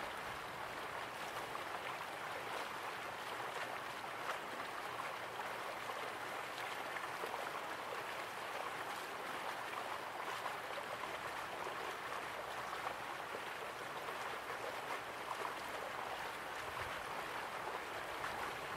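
Water splashes steadily into a pool from a small waterfall.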